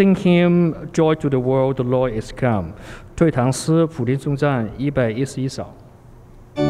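A man speaks calmly through a microphone in a large echoing hall.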